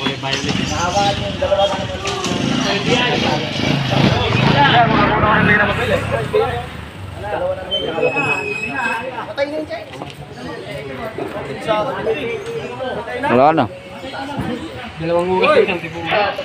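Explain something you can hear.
A crowd of men talk and call out nearby outdoors.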